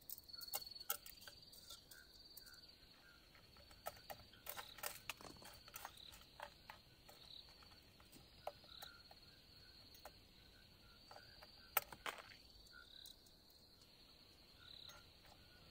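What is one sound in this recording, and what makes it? Dry noodles crunch and crackle as a hand breaks them up.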